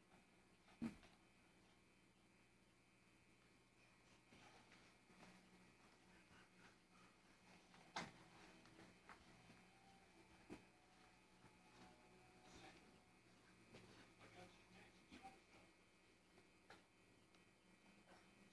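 A toddler thumps softly while climbing stairs.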